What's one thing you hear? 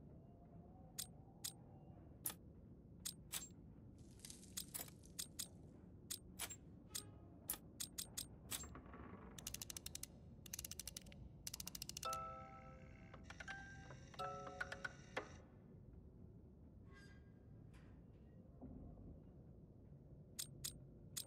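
Metal rollers click and clack as they turn one by one.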